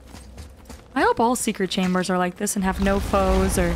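A young woman speaks with animation close to a microphone.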